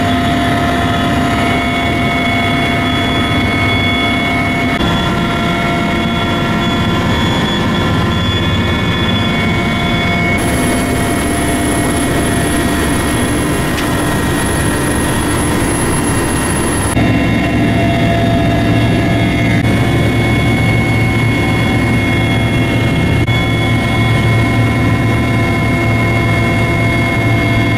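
A helicopter engine and rotor drone loudly and steadily from inside the cabin.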